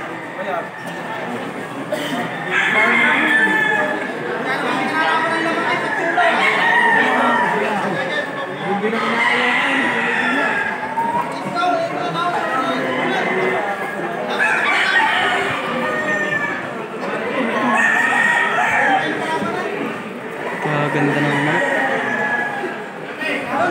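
A crowd of men talk and shout excitedly close by.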